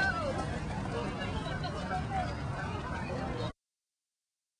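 Distant voices murmur outdoors.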